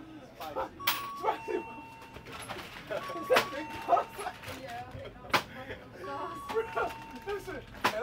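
A cash register beeps several times.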